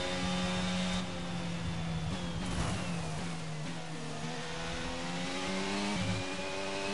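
A racing car engine drops in pitch as the car brakes hard, then climbs again.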